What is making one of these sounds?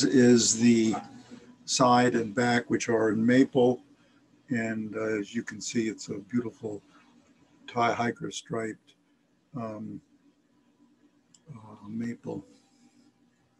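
An elderly man talks calmly, close by.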